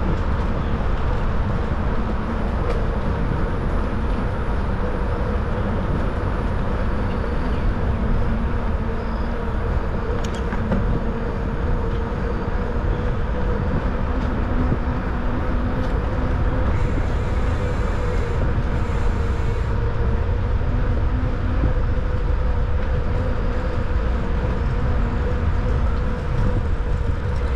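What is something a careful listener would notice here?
Tyres roll and hum on smooth pavement.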